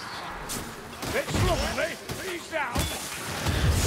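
Blades slash and strike in a close fight.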